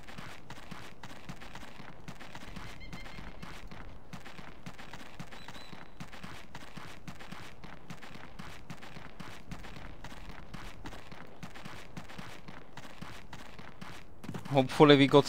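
Footsteps thud quickly and steadily on stone.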